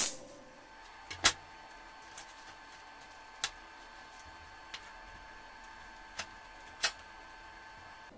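A metal chain clinks as it is handled.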